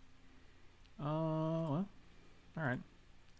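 A man speaks close to a microphone, drawing out his words in a sing-song voice.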